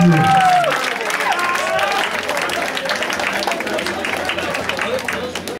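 A crowd of young men shouts and cheers loudly.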